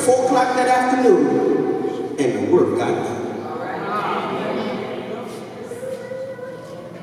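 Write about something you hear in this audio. A man speaks with animation through a microphone and loudspeakers in an echoing hall.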